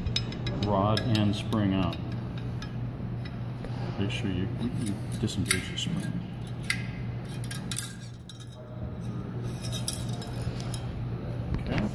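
Metal parts click and clack as they are handled.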